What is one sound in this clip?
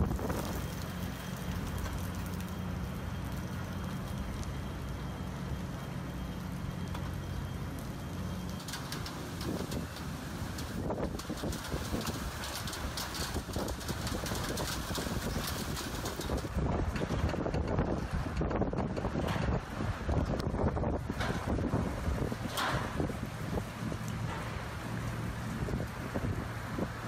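Strong wind gusts and roars outdoors, buffeting loudly.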